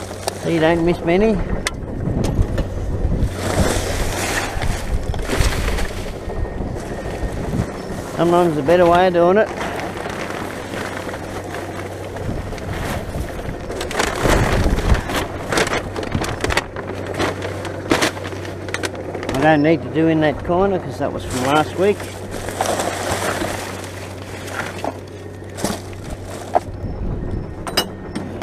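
Loose items clatter and knock against the bin's metal sides.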